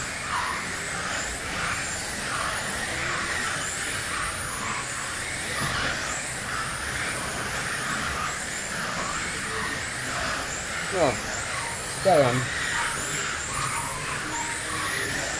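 Small electric race cars whine at high speed, rising and falling in pitch.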